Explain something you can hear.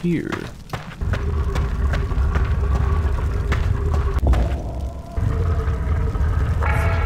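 A burning blade roars and crackles steadily.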